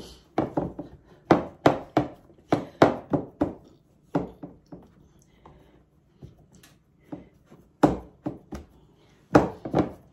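Fingers press soft dough into a metal baking tin.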